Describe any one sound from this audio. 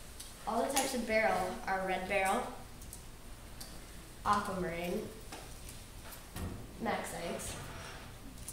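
A boy speaks nearby in a room, presenting with pauses.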